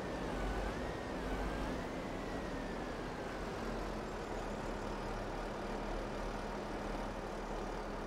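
Gravel pours from a loader bucket into a metal container.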